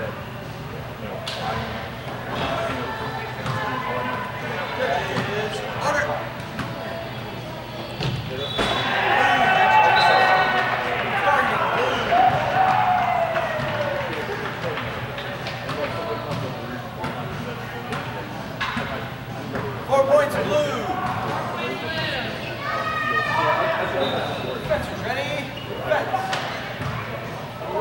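Men talk with animation in a large echoing hall.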